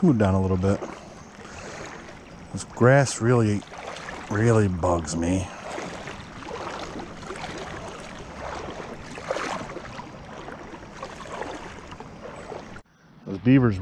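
Wind blows outdoors across open water.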